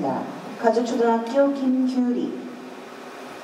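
A man speaks calmly nearby in a large echoing hall.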